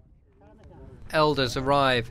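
Men talk nearby outdoors.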